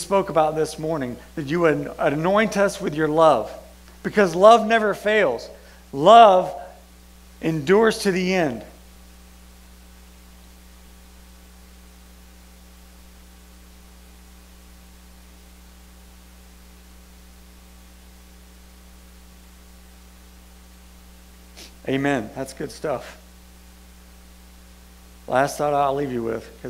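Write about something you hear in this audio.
A man speaks calmly through a microphone, pausing for long stretches.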